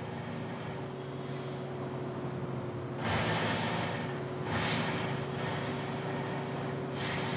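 A truck engine hums steadily as it drives along.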